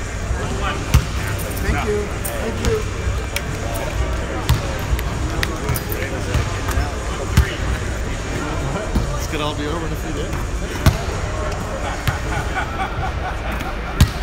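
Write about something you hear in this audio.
A basketball bounces on a hardwood court in an echoing gym.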